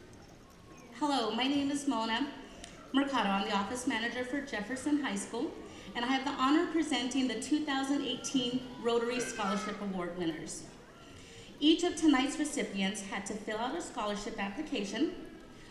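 A young woman speaks steadily through a microphone in a large hall.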